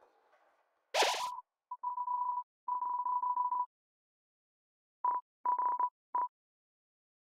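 Game dialogue text blips out in quick beeps.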